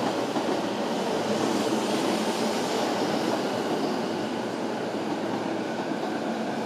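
A passenger train rumbles past close by, its wheels clattering steadily on the rails.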